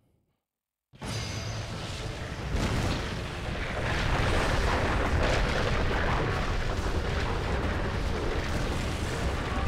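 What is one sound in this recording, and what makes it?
Fire roars steadily.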